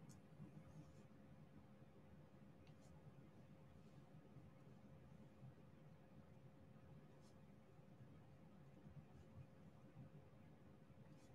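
Small plastic beads click softly as they are pressed into place.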